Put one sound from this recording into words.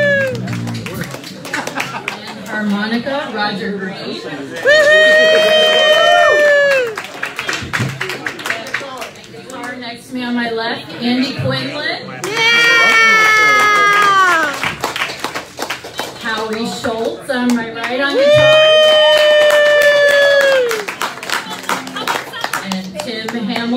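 A singer sings loudly into a microphone, holding long notes.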